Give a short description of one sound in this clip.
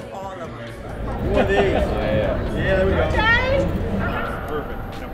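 Several men cheer and talk loudly close by.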